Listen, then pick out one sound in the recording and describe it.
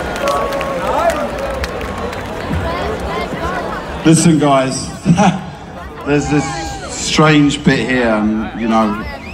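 A large crowd murmurs and cheers in the open air.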